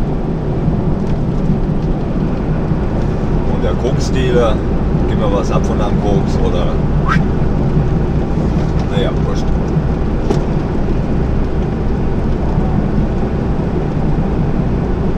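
A diesel truck engine drones as the truck cruises on a motorway, heard from inside the cab.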